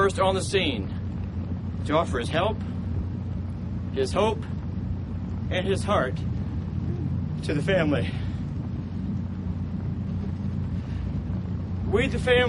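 A man speaks slowly and haltingly into a microphone outdoors, with long pauses.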